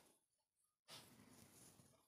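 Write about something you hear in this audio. Cloth rustles softly as it is handled.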